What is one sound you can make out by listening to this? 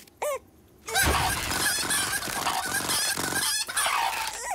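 Hens flap and scuffle in a noisy tussle.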